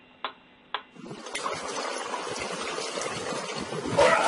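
Water splashes as a person swims.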